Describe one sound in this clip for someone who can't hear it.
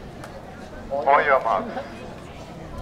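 A man calls out loudly across an open field.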